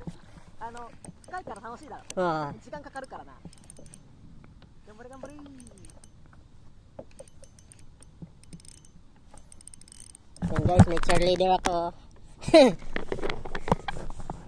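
Water laps gently against a small boat.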